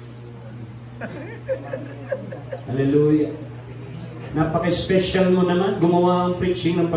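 A man speaks to an audience.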